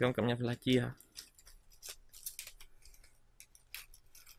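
Scissors snip through a plastic bag.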